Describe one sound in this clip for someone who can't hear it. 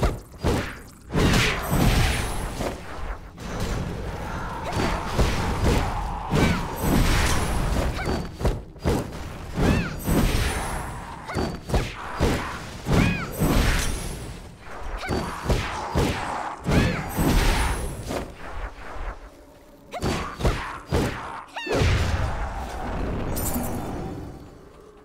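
Swords clash and slash in quick, repeated strikes.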